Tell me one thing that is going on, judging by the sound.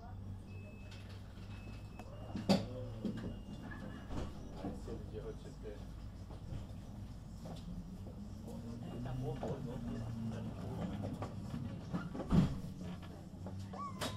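A standing tram hums steadily.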